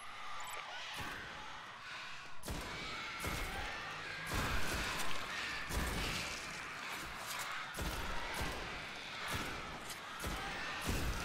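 Gunfire from a rifle rings out in repeated bursts.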